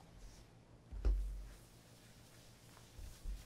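A cloth rubs and wipes across a wooden tabletop.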